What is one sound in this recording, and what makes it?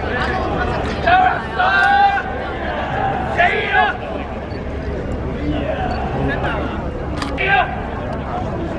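Men shout loudly together in chants.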